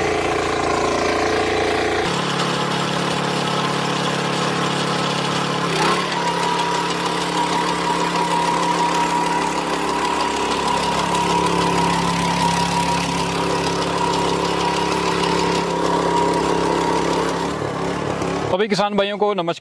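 A small petrol engine runs loudly and steadily.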